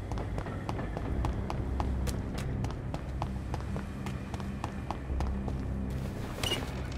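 Running footsteps slap quickly on wet cobblestones.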